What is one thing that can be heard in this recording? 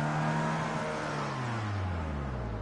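A racing car engine winds down in pitch as the car slows to a stop.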